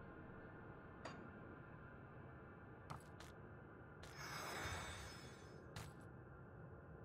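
Short clinking game sounds play as items are picked up.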